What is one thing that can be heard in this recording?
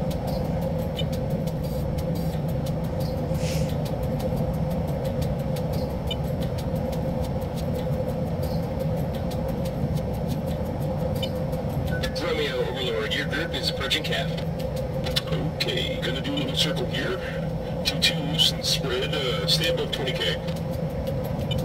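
A jet engine roars with a steady, humming drone.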